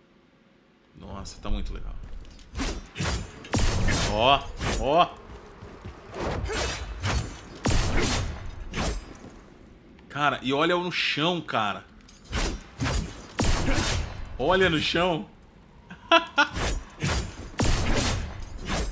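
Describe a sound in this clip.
A blade swishes and strikes in quick bursts.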